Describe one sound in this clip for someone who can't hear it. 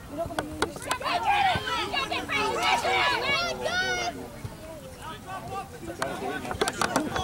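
Young women shout and call out across an open field.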